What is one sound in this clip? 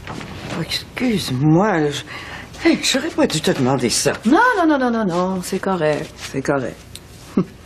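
An elderly woman speaks with animation.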